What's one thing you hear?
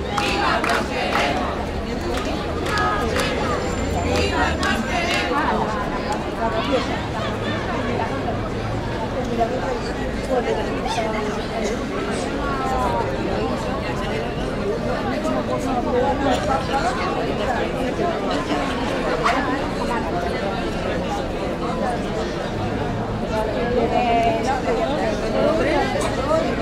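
A crowd of men and women chatters close by outdoors.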